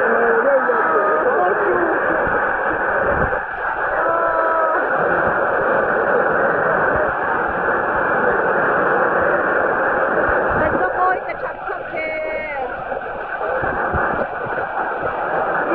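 A large stadium crowd roars and chants loudly outdoors.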